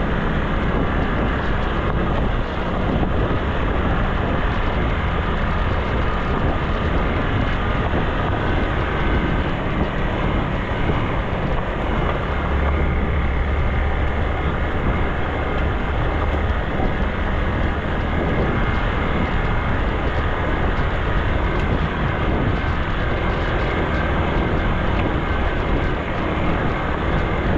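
Tyres crunch over a rough gravel track.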